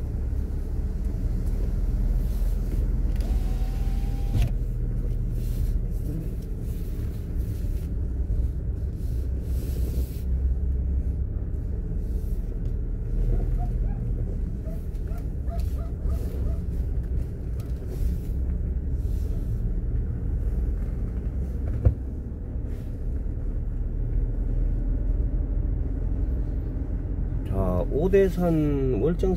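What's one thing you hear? A car's engine hums low and steady as it drives along.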